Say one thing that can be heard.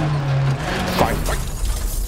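A car crashes into a tree with a loud bang.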